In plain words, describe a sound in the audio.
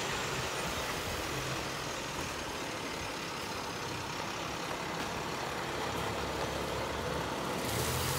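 A truck rolls slowly over wet gravel.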